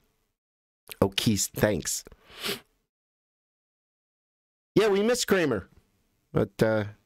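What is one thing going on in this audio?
A man speaks close into a microphone, in short bursts with pauses.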